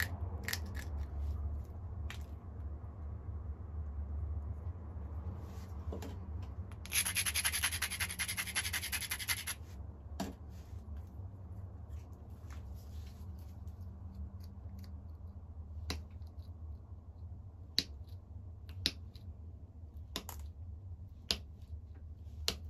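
Sharp clicks of stone tapping on stone sound now and then.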